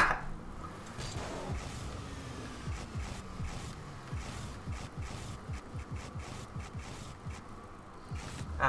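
A video game car engine revs up and down over and over.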